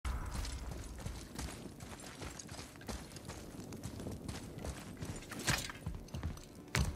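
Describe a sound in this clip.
Heavy footsteps thud on a hard floor in an echoing room.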